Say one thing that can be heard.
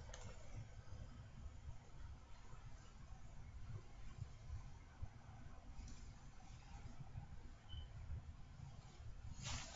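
Hands rustle through hair.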